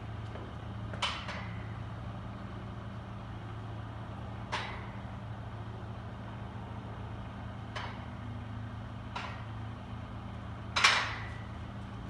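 A barbell clanks against a rack's hooks.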